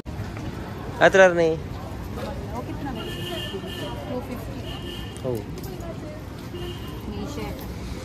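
Metal jewellery jingles softly as it is handled.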